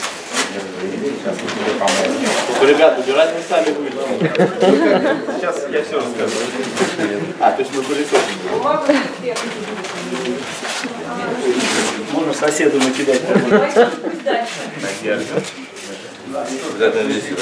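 A man talks in an echoing hall.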